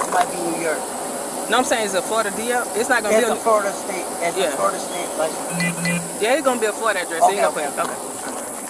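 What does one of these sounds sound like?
A man talks calmly from inside a car, close by.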